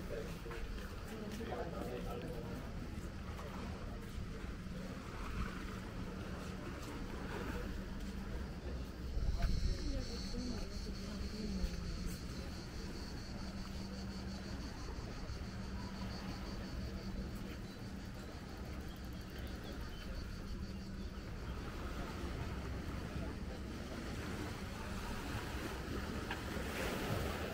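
Footsteps walk steadily along a paved path outdoors.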